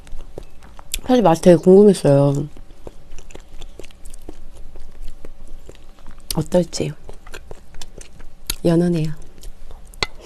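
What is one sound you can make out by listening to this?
A young woman speaks softly and cheerfully close to a microphone.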